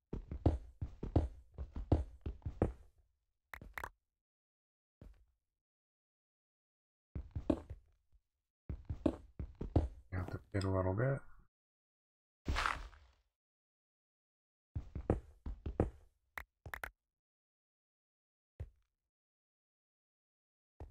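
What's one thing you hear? A pickaxe chips at stone with short, dry knocks.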